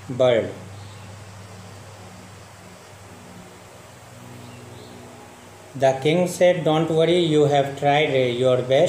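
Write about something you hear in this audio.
A man speaks clearly and calmly, close by.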